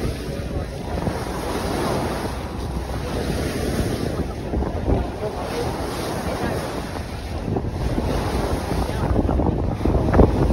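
Water splashes and churns against the side of a moving boat.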